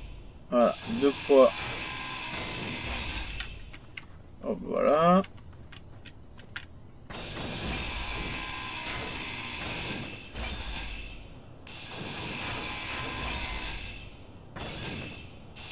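A cutting tool hisses and crackles in bursts.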